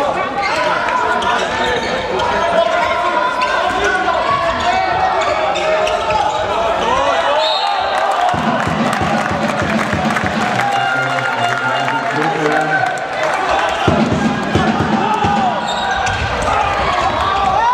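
Young men shout to each other across an echoing hall.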